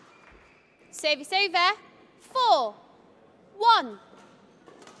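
Sports shoes squeak loudly on a hard court floor.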